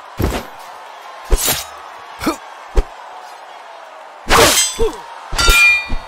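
Heavy blows thud against bodies.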